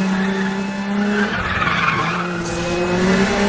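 Tyres screech on asphalt through a bend.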